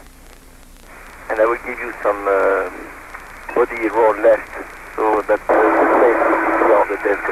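A man speaks briefly over a crackly, thin radio link.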